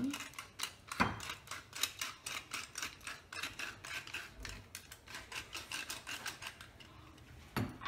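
A pepper mill grinds with quick clicking.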